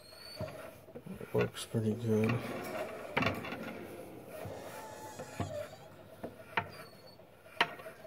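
A hand pump creaks and clicks as its handles are worked.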